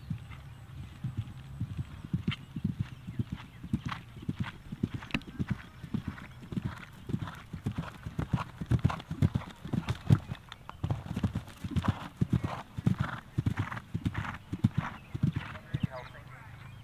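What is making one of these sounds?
Hooves thud rhythmically on grass as a horse gallops.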